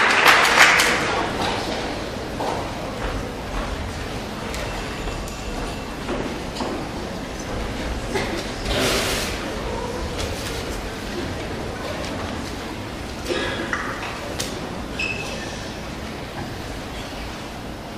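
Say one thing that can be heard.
A crowd murmurs quietly in a large echoing hall.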